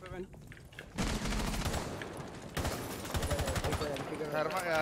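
A rifle fires sharp, loud shots.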